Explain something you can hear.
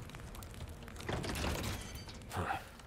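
A locked wooden door rattles.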